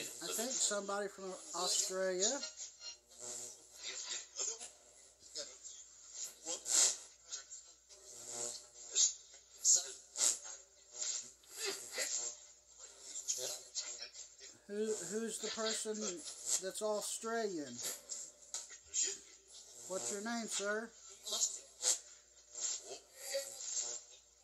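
Short bursts of static and choppy sound play from a small loudspeaker.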